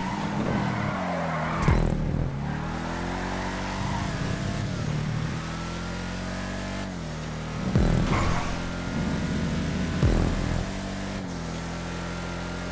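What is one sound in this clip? A car engine roars steadily, rising and falling in pitch as it shifts gears.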